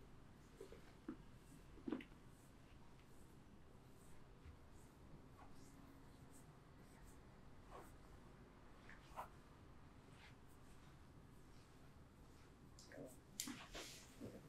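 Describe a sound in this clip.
Fingers tap lightly on a head.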